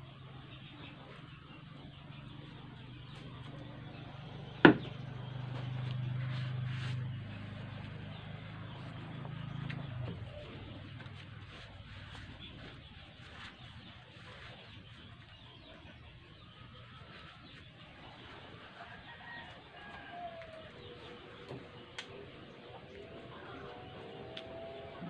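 Leaves rustle and crinkle softly as they are folded by hand.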